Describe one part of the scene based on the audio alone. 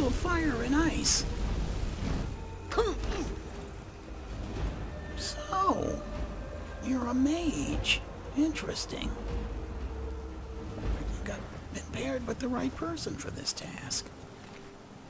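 A magic spell crackles and hisses in bursts.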